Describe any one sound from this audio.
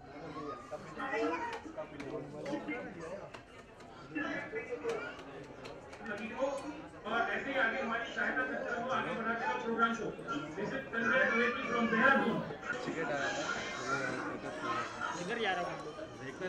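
Several women chat and laugh together close by.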